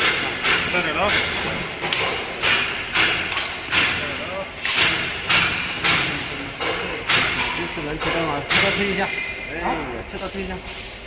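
A machine runs with a loud, rhythmic whooshing and clattering.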